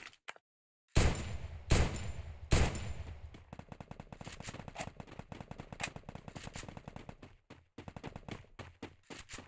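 Guns fire in quick bursts of sharp shots.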